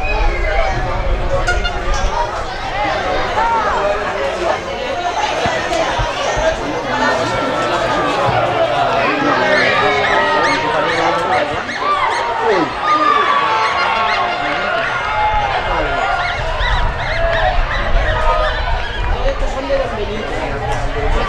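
A crowd of spectators chatters and calls out from the stands.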